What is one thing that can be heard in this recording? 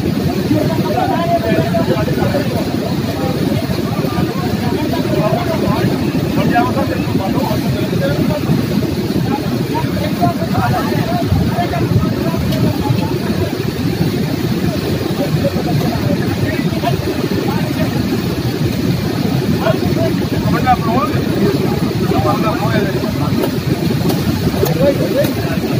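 Men talk in the background.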